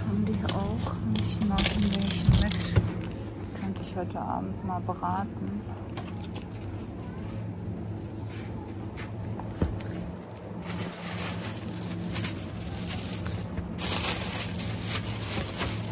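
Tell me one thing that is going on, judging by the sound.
Plastic packaging crinkles and rustles in a hand.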